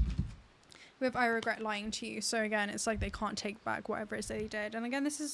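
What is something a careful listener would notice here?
A young woman speaks calmly and clearly, close to a microphone.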